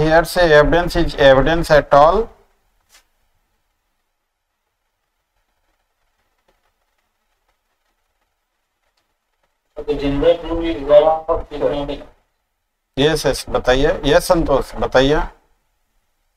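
An older man speaks calmly into a microphone in bursts, with pauses between.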